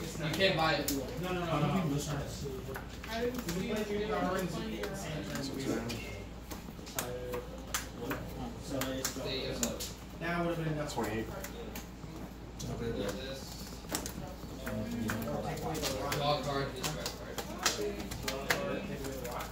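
Playing cards tap softly as they are laid on a table.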